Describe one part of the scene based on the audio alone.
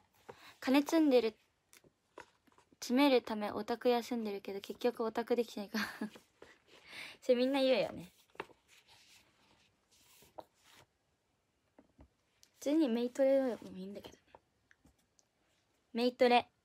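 A young woman talks casually and close to a microphone, in short bursts with pauses.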